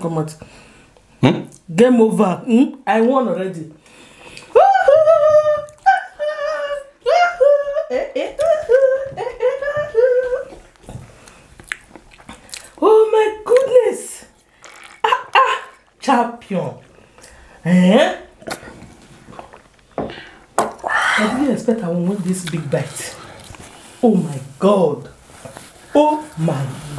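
A woman talks animatedly close to a microphone.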